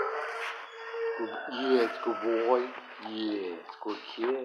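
A dog whines close by.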